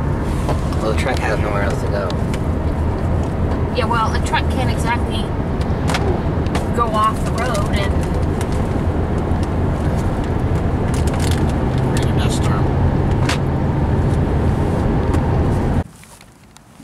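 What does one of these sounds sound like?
A car engine hums steadily with road noise.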